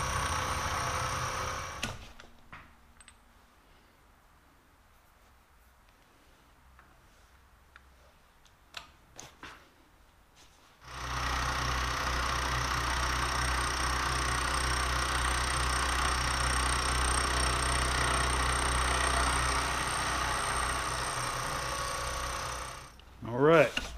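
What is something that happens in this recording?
A milling machine hums and whirs steadily as its cutter spins.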